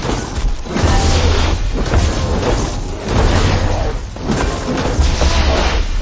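Heavy blows strike in a fight.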